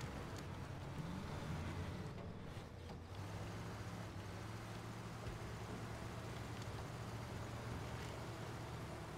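An off-road vehicle's engine rumbles steadily as it crawls over rough ground.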